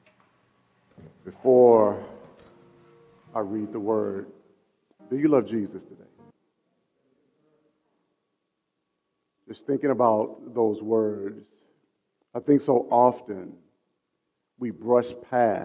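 A man speaks calmly into a microphone in a large room, heard through loudspeakers.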